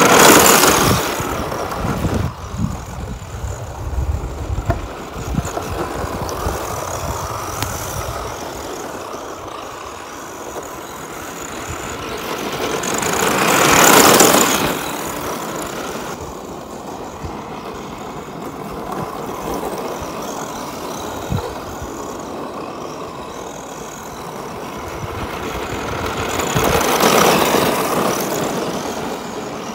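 Tyres scrabble and skid on loose dirt.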